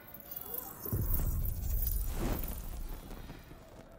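A candle flame flares up with a soft whoosh.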